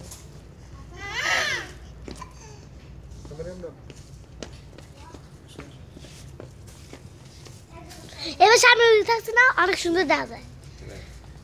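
A toddler squeals and babbles loudly nearby.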